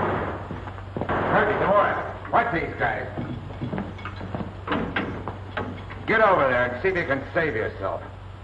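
A man speaks firmly in an old, hissy recording.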